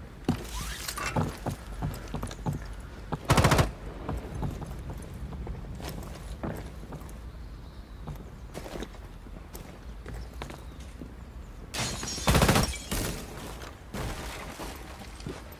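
Footsteps crunch across a shingled roof.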